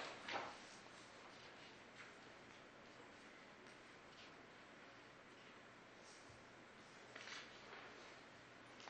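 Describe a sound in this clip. A man speaks quietly at a distance in a room.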